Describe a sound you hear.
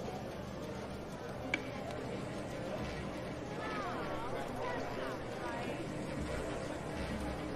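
A roulette ball whirs around a spinning wheel.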